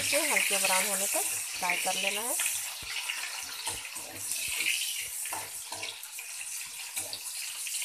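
A metal spatula scrapes and clinks against a pan.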